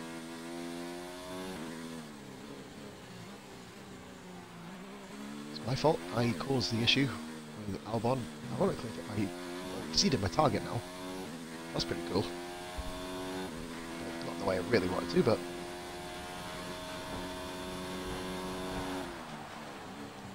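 A racing car engine drops in pitch as the car brakes.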